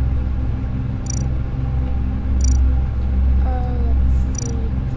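Short high electronic menu blips sound.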